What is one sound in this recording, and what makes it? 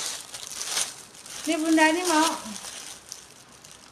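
Plastic wrapping rustles and crinkles in a woman's hands.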